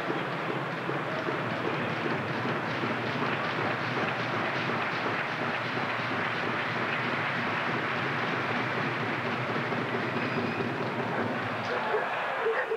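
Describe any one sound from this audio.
A stadium crowd murmurs and cheers steadily in a large open space.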